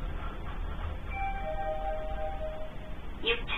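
An elevator chime rings with a few clear tones.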